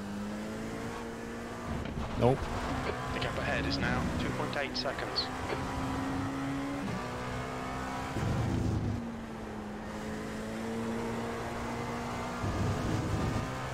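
A racing car engine drones steadily and shifts pitch through the gears.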